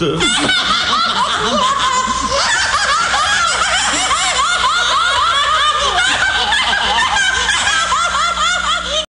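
A man talks rapidly in an exaggerated, comic voice.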